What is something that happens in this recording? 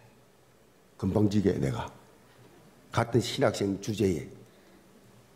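An elderly man speaks with feeling through a microphone, pausing between phrases.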